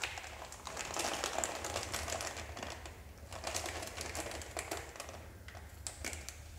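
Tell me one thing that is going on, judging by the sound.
A knife slits open a plastic packet with crinkling and rustling.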